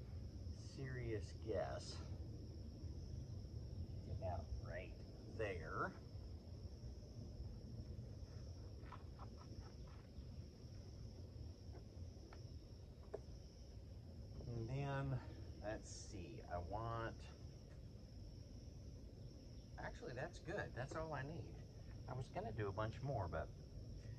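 A man talks calmly up close.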